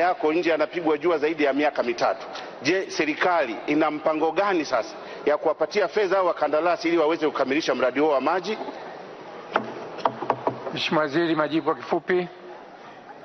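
A man speaks loudly and forcefully into a microphone in a large hall.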